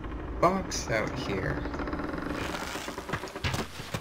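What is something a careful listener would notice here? A bowstring creaks as a bow is drawn.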